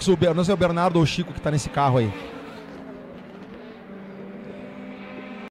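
Two race car engines roar as the cars speed away.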